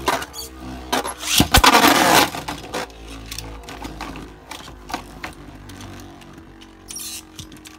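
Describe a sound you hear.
A spinning top whirs and scrapes around a plastic bowl.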